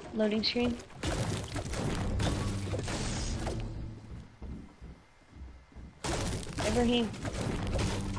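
A pickaxe strikes wood with repeated chopping thuds.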